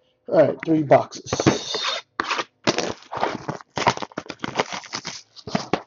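Cardboard boxes slide and knock together.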